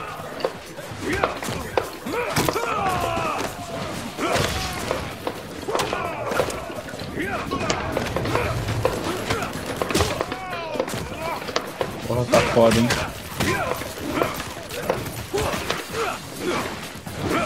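Punches and kicks land with heavy thuds in a fighting game.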